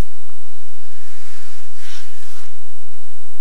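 Clothing rustles as a man lowers himself to the ground.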